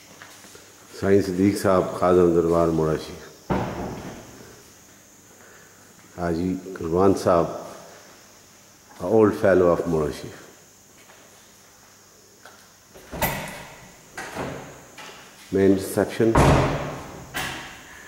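An elderly man speaks calmly and close by in an echoing hall.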